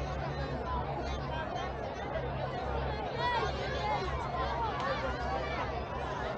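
A crowd of people chatters outdoors across an open field.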